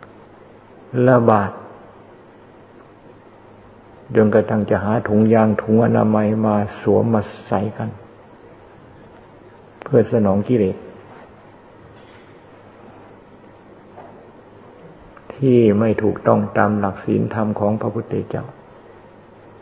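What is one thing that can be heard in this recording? An elderly man speaks calmly and slowly, with pauses.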